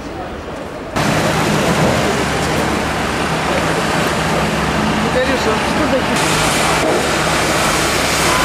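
Car traffic rumbles by on a busy street.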